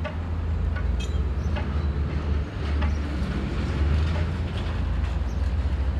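Water laps gently against a stone wall.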